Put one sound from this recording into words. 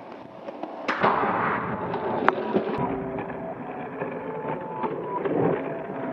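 A skateboard grinds along a metal rail.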